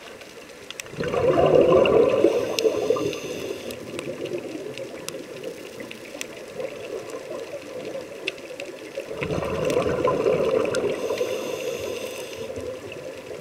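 A scuba diver breathes out through a regulator underwater.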